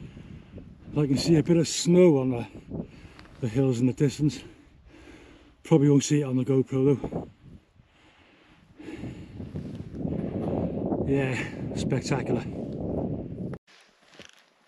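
A man talks close to the microphone outdoors.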